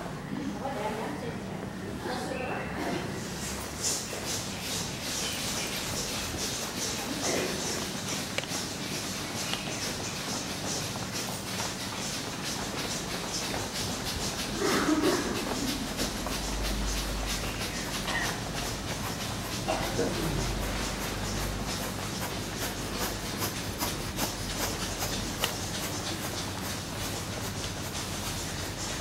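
A crowd of adults chats outdoors.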